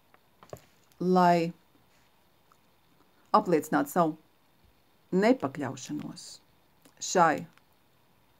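A middle-aged woman speaks close up, in short, drawn-out phrases with pauses between them.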